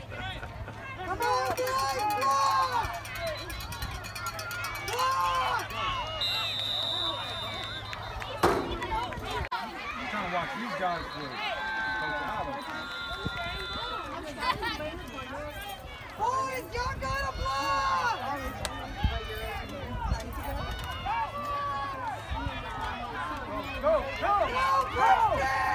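A crowd of spectators chatters and cheers outdoors nearby.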